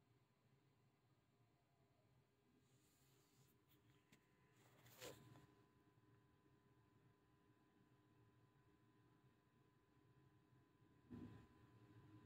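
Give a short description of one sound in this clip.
Stiff fabric rustles softly as it is handled.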